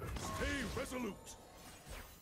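Bright chiming tones sound from a card game.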